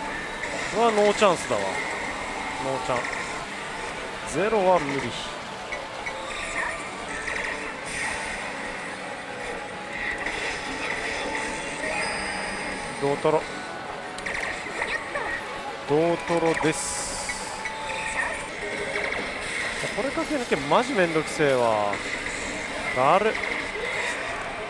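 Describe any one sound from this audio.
A slot machine's reels spin and stop.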